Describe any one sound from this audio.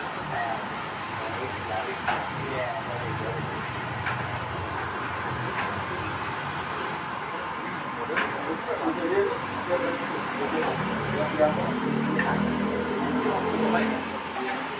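Several men talk casually nearby.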